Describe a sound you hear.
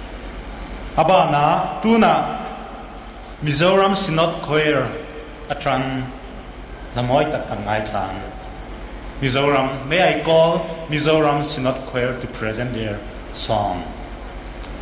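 A man speaks into a microphone over loudspeakers, echoing in a large open hall.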